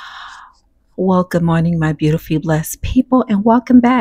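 A middle-aged woman speaks calmly and close into a microphone.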